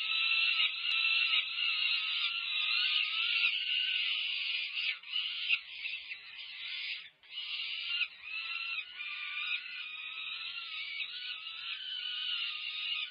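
Young falcons screech loudly and constantly, begging for food.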